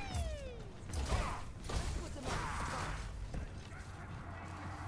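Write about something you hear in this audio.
A gun fires sharp shots.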